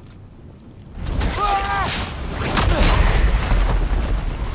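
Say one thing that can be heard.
Electricity crackles and booms in loud bursts.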